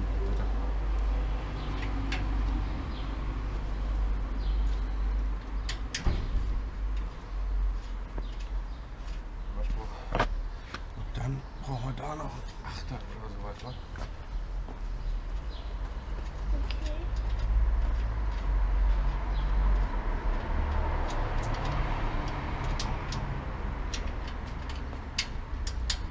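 Metal parts click and clink as a bicycle wheel is worked on by hand.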